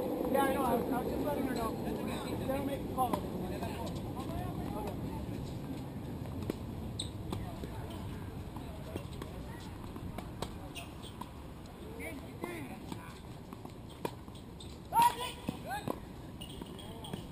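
Tennis balls are struck with rackets with sharp pops.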